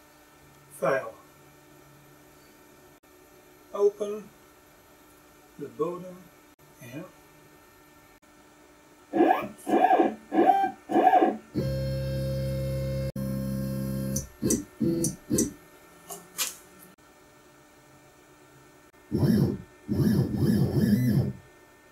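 A man taps on a touchscreen.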